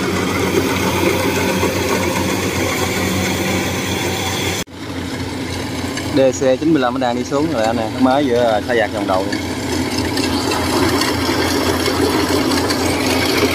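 A combine harvester engine rumbles steadily close by.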